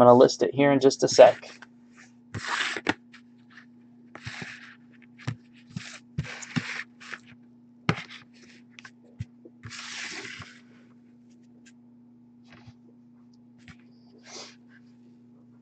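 Hands slide and tap cards on a hard surface.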